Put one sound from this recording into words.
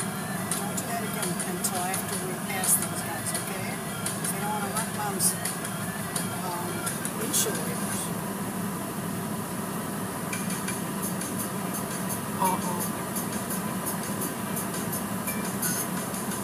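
A car wash machine hums and whirs steadily.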